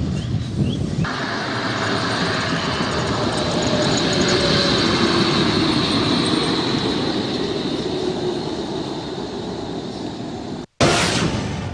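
A bus engine rumbles as a bus drives past on a road.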